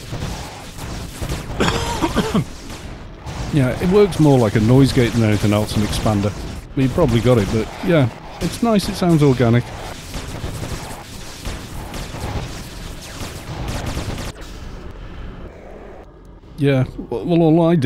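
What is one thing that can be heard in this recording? Game spells whoosh and crackle.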